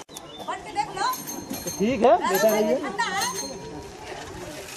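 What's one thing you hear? Children and young people chatter and laugh close by.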